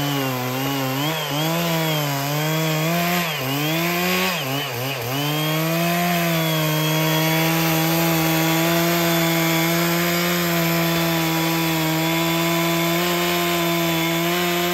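A chainsaw engine revs up and down loudly, then runs at a steady high roar while cutting into wood.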